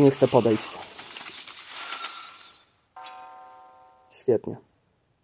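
A magic spell whooshes with a chime.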